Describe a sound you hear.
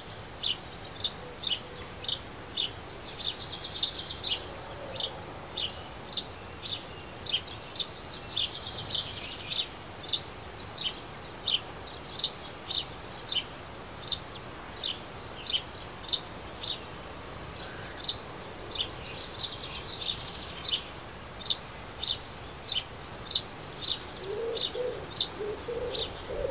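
A sparrow chirps sharply and repeatedly, close by.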